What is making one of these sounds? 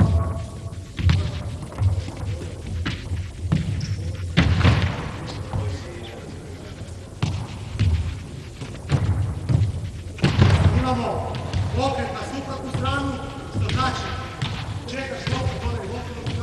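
A ball thuds on a hard floor and echoes through a large hall.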